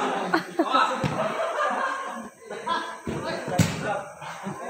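A futsal ball is kicked.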